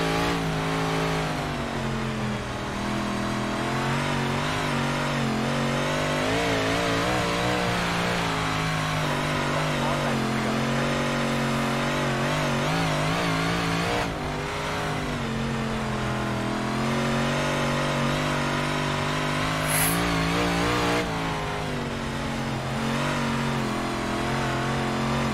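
A race car engine drones steadily, its pitch rising and falling with the revs.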